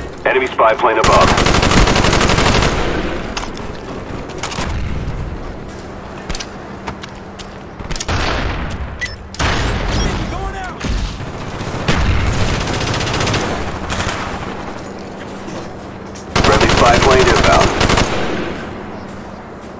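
Rapid bursts of automatic gunfire crack loudly, coming in several bursts.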